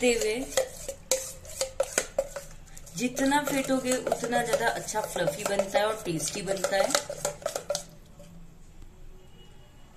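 A spoon scrapes and clinks against a metal bowl.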